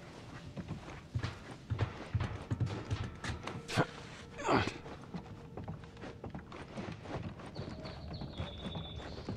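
Footsteps thud on creaking wooden boards.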